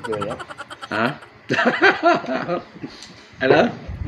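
A second man laughs close by.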